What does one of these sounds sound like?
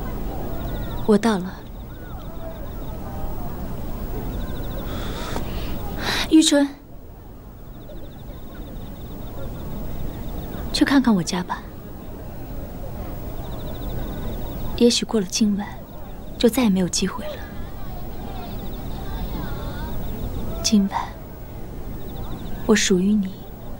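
A young woman speaks softly and close by, in short phrases with pauses.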